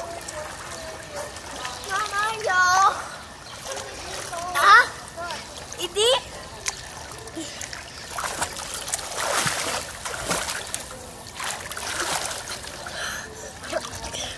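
Water splashes as a child swims.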